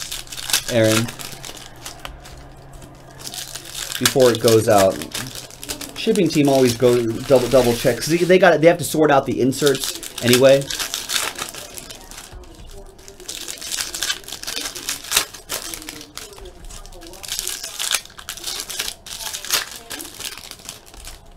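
Plastic card wrappers crinkle and tear.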